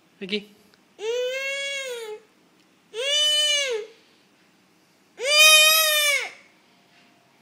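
A woman sings long, rising and falling notes close by.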